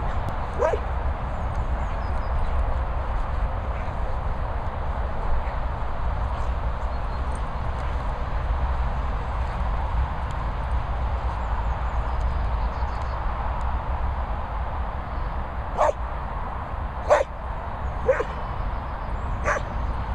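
A dog gives short, sharp yelps now and then.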